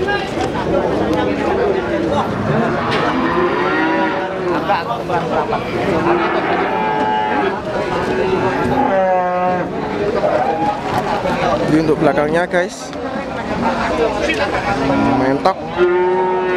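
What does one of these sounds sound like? Many men talk and call out nearby in a busy crowd, outdoors.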